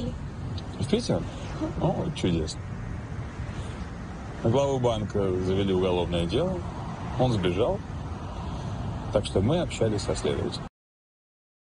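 A man talks calmly.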